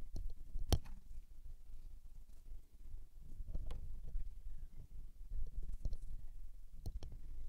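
A paintbrush dabs and strokes softly on paper.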